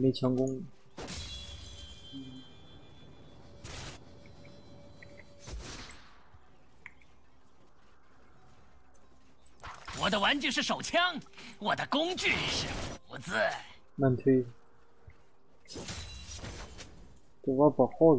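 Game sound effects of fighting and spells clash and whoosh.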